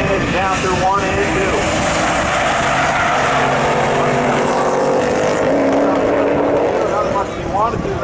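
Tyres squeal on asphalt.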